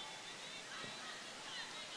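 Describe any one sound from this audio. A basketball bounces once on the floor.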